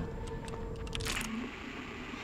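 A lighter clicks open.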